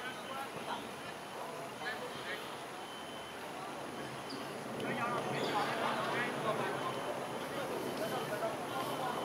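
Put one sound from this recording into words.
Men shout and call out across an open field, heard from a distance.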